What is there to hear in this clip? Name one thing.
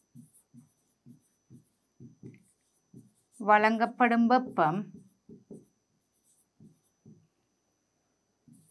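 A marker taps and scratches on a whiteboard.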